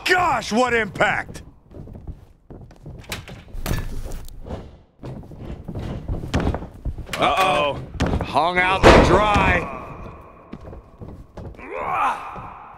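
Heavy thuds of bodies slamming onto a wrestling ring mat.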